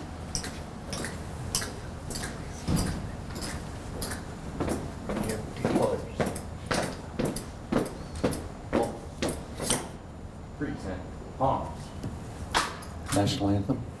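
Footsteps tap on a hard floor in a steady march.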